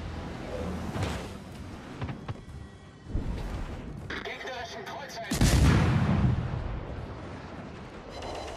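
Shells splash into the sea nearby with heavy thuds.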